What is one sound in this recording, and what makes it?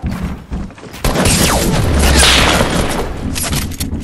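A loud explosion booms and rumbles.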